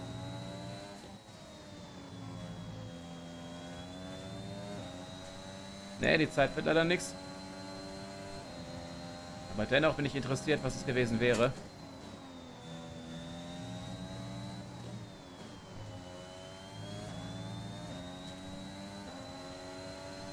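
A racing car engine whines steadily, rising and falling in pitch as it shifts gears.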